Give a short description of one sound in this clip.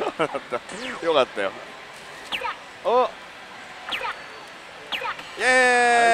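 A slot machine plays quick electronic chirps and bleeps.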